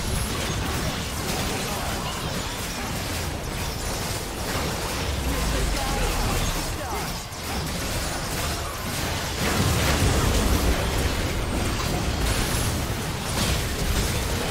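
Spell effects crackle and whoosh during a fantasy battle.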